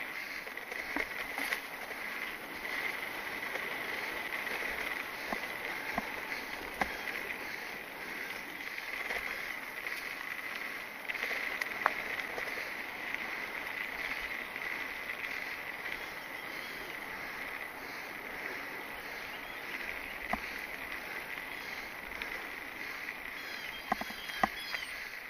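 A mountain bike rattles and clicks over bumps.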